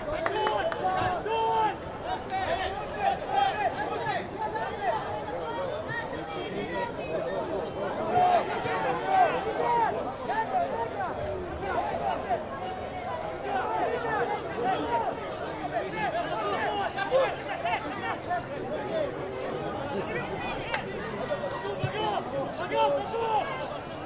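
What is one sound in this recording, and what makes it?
Football players shout to each other across an open field.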